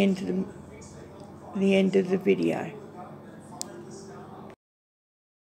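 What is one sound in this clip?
An elderly woman speaks calmly, close to a phone microphone.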